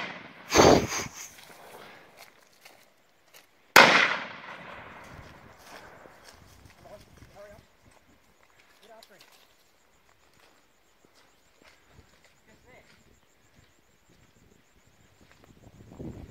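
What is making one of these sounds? Footsteps crunch on dry leaves and grass.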